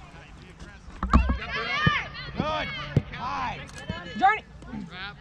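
Young girls shout and call out across an open field outdoors.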